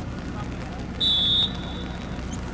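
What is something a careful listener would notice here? A referee's whistle blows a short sharp blast.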